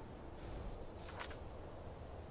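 A soft click sounds.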